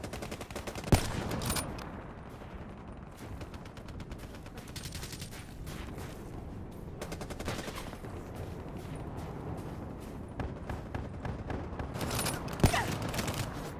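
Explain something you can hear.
A sniper rifle fires single sharp shots.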